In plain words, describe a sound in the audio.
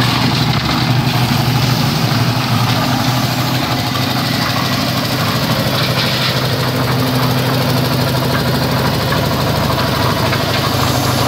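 A mixer drum churns wet gravel and concrete.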